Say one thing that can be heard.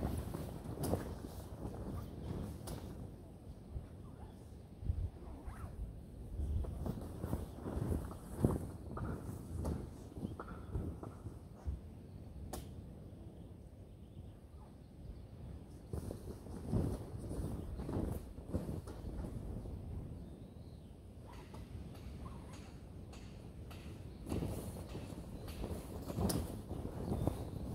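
A large plastic sheet rustles and flaps in the wind.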